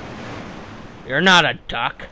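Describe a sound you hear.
Water rushes and splashes into a pool.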